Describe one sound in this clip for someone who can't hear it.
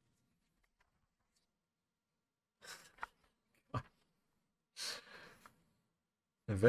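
Paper pages rustle as a comic book is turned.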